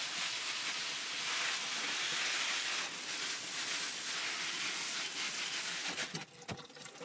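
Water sprays steadily from a shower head onto plants.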